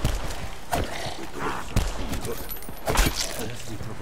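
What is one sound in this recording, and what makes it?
Heavy melee blows land with dull thuds.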